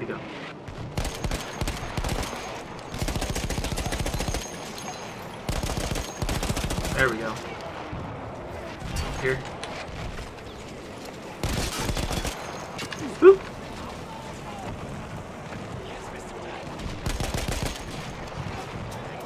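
A machine gun fires rapid bursts.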